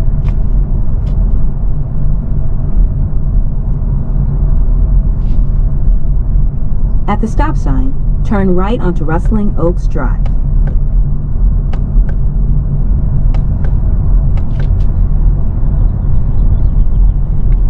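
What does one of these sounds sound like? A car engine hums with a steady low rumble of tyres on the road.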